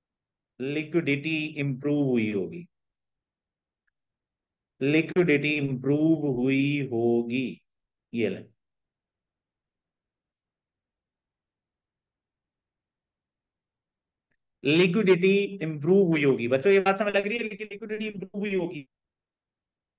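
A man talks calmly through a microphone, pausing now and then.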